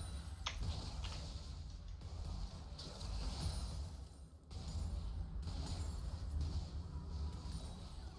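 Fantasy battle sound effects clash and whoosh.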